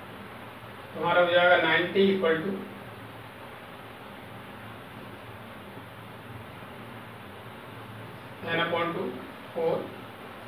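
A man speaks calmly, explaining in short bursts.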